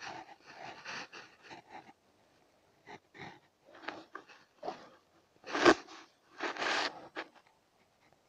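Hands scrape and rustle in dry soil.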